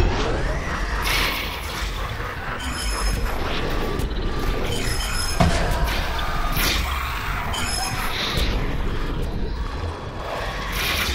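A video game's rapid-fire shooting crackles without a break.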